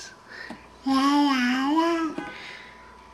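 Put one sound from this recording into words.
A toddler sings out a long, high sustained note close by.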